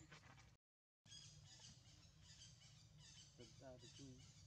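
A small monkey rustles through dry leaves.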